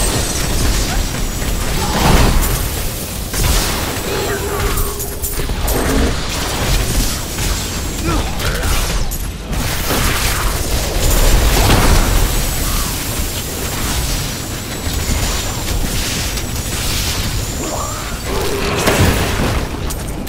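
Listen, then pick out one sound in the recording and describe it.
Fiery laser beams blast and crackle in a video game.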